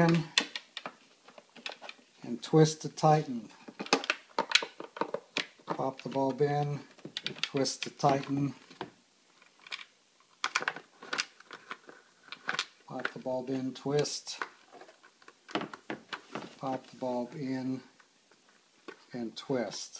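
Plastic parts click and rattle as a tail light's bulb sockets are twisted and pulled.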